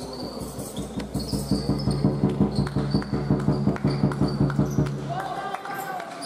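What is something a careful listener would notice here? A basketball bounces in a steady dribble in an echoing hall.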